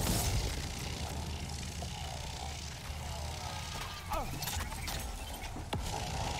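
Zapping energy blasts crackle and burst in a video game.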